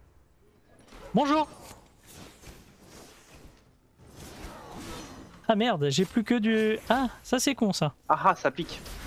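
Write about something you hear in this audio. Magic spells crackle and whoosh during a fight.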